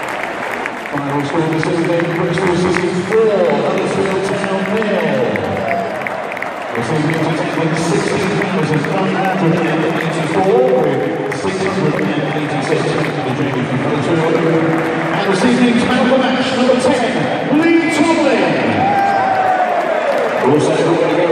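A stadium crowd sings a chant in unison.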